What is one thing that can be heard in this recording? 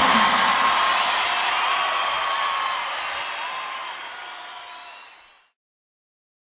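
A man sings loudly into a microphone, then fades out.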